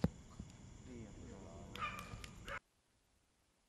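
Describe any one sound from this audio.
Men talk outdoors nearby.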